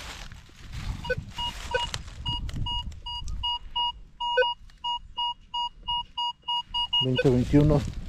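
A metal detector beeps in quick, regular pulses.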